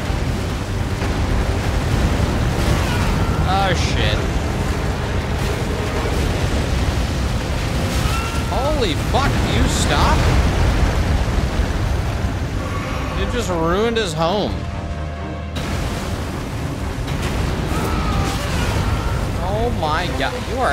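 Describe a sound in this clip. A huge beast growls and roars with deep rumbling.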